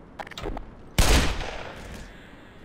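A gun fires a couple of loud shots close by.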